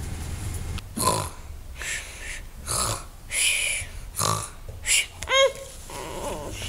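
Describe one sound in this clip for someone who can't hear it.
A young boy snores and groans loudly in mock sleep.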